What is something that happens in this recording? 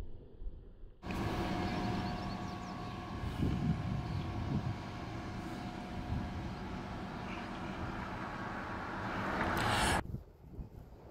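A large ship's engine hums steadily as it passes close by.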